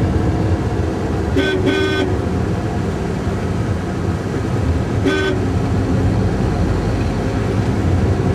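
A car engine hums steadily from inside a moving car, with road noise rumbling low.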